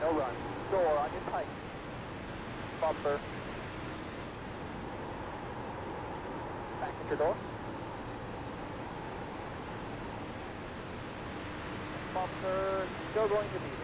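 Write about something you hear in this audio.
A man talks in short bursts through a close microphone.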